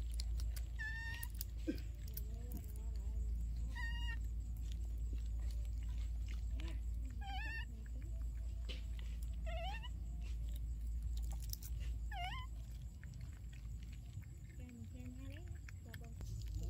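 A baby monkey chews food with soft smacking sounds.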